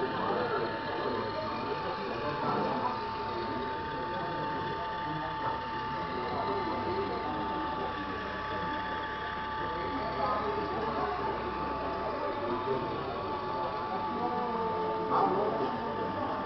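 A small electric toy motor whines steadily.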